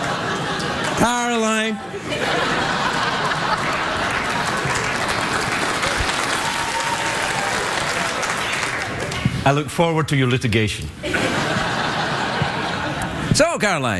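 A man speaks loudly and playfully into a microphone.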